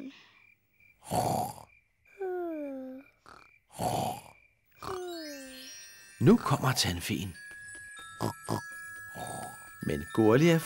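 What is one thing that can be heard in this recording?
A young girl snores loudly.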